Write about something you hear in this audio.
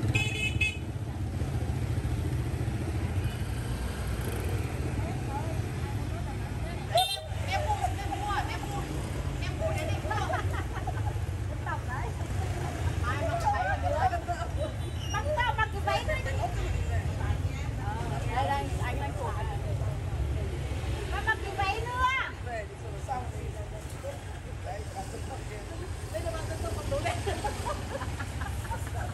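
Motorbikes pass by on a busy street.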